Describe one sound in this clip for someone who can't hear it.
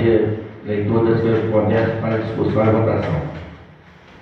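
A man speaks into a microphone with animation, in a room with some echo.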